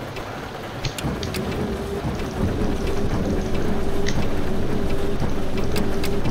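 A bus engine starts and idles with a low rumble.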